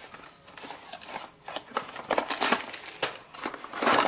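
Plastic wrapping crinkles as it is pulled apart.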